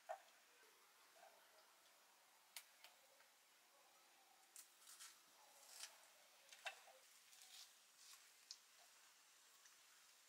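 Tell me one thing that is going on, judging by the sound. Cut chilli pieces drop onto a clay plate with light taps.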